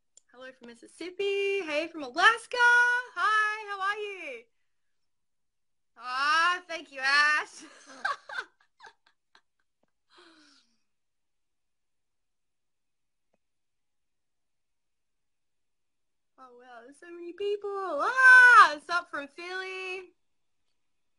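A young woman talks cheerfully and close to a phone microphone, with pauses.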